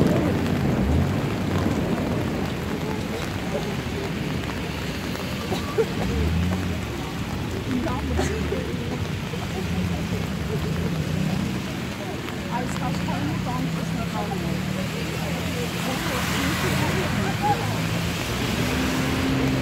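Wind gusts and rumbles loudly outdoors.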